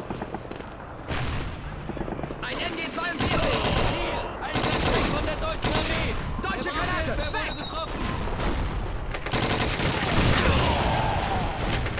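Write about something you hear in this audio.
Gunshots fire in rapid bursts, echoing between walls.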